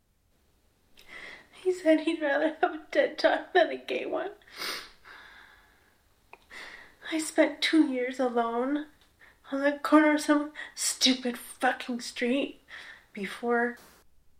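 A woman speaks tensely and with menace, close by.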